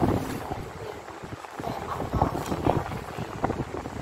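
Paper rustles softly as fingers press and slide it on a table.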